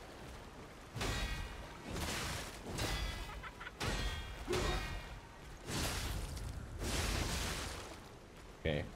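Heavy blades whoosh and clash with loud metallic ringing.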